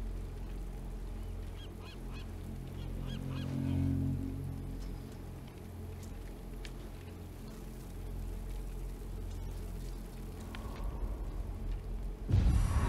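A low rumble of wind drones steadily outdoors.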